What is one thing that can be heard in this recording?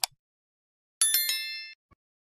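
A small bell chimes brightly and fades.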